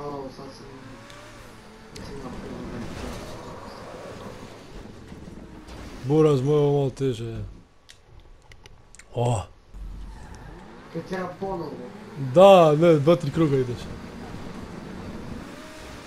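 A sports car engine revs and roars.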